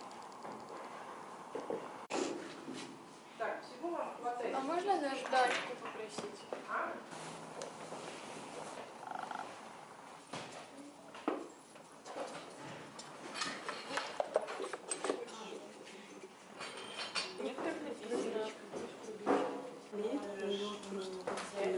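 Young women talk nearby.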